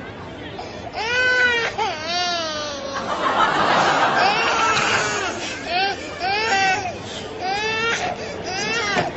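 A baby cries loudly and wails.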